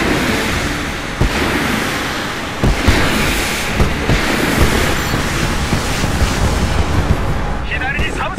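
A helicopter's rotor and engine thrum.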